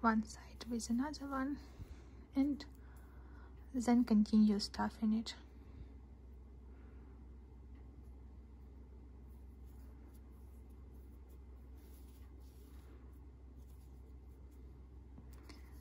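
Yarn rustles softly as it is pulled through stitches.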